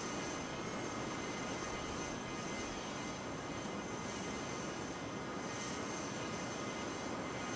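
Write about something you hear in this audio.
Jet engines roar steadily as an airliner climbs away.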